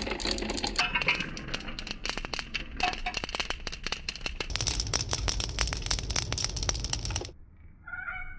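Light balls bounce and patter on a hard tiled floor.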